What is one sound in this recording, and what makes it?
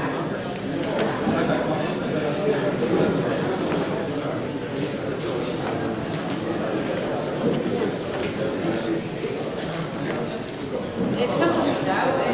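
A crowd of elderly people chatters in a large echoing hall.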